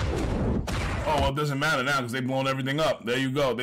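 A man speaks into a microphone with animation, close by.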